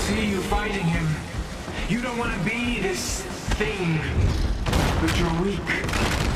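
A heavy creature smashes into metal with loud thuds.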